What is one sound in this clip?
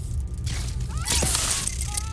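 Electricity crackles and buzzes.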